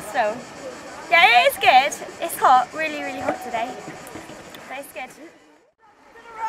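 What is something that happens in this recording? Young girls talk and laugh close by.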